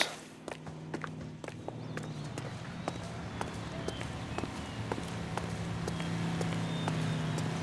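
Footsteps tap steadily on a hard path.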